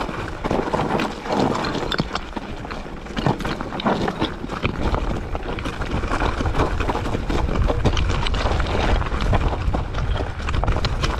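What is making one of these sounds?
A bicycle's chain and frame rattle over bumps.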